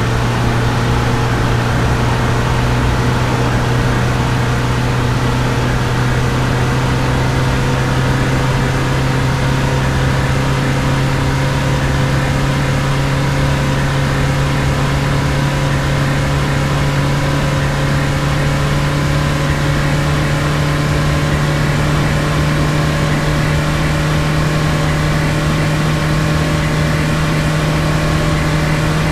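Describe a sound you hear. Tyres roll on a highway with a steady rumble.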